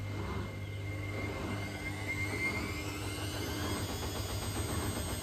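A washing machine motor whines upward as the drum speeds up.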